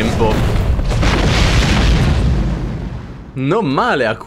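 A deep rumbling blast roars and fades.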